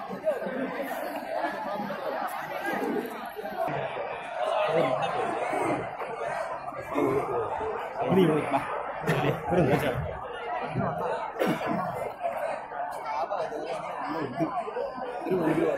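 A large crowd of young people chatters outdoors.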